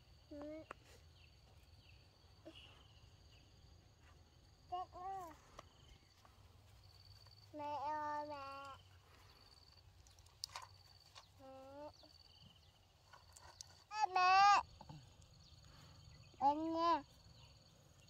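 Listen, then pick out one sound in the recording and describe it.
A small child calls out nearby in a high voice, in short bursts.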